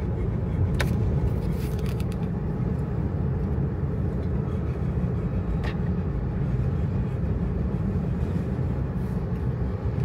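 Car tyres rumble steadily on a paved road.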